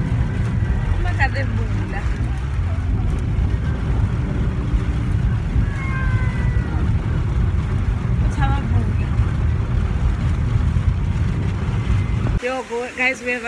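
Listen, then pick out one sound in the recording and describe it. A car's engine rumbles low and steady.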